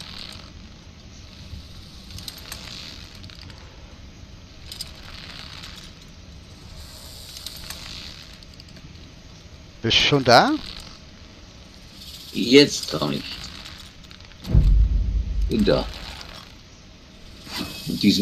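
A rope rubs and creaks as a climber pulls up hand over hand.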